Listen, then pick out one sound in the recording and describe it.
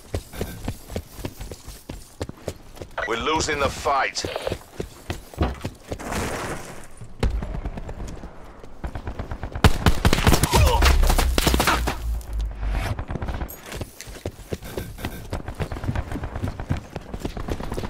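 Footsteps run on stone paving.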